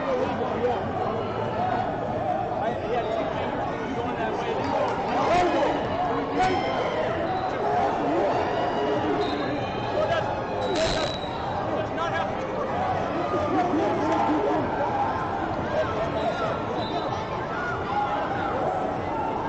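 A crowd chatters throughout in a large echoing hall.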